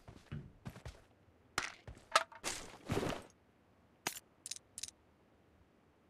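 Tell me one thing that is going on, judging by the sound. Gear rustles and clicks as items are picked up.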